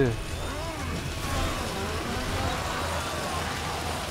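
A chainsaw roars.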